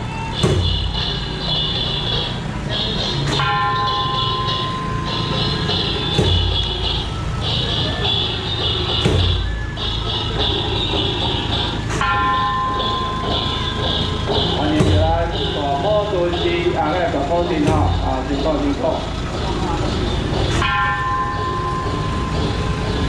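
Festival music with loud periodic beats plays from a loudspeaker on a passing float.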